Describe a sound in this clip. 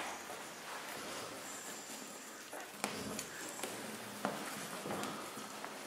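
Very young puppies squeak and whimper as they nurse.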